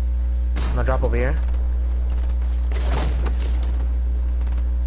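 A pickaxe chops at wood with hard knocks.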